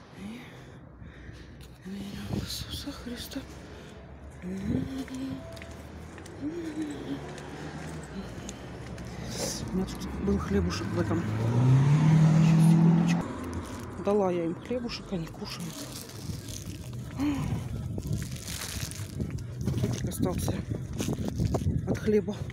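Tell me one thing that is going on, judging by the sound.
Footsteps scuff on pavement outdoors.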